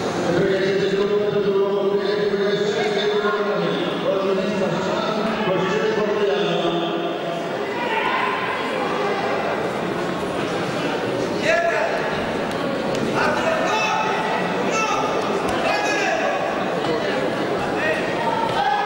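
A crowd of spectators shouts and cheers throughout in a large echoing hall.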